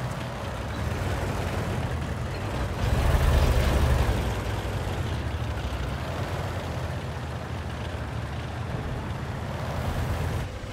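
Tank engines rumble and clank steadily.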